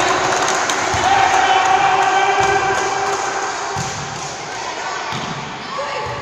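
A volleyball is struck with sharp slaps in an echoing gym.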